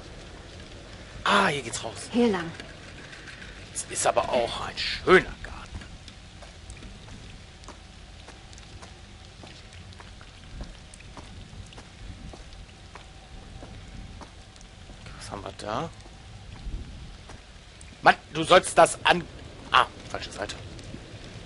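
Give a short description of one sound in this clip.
Footsteps crunch softly on dry leaves and gravel.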